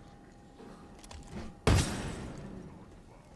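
A heavy thud of a melee strike lands with a short ringing tail.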